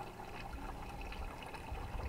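Water pours into a bowl.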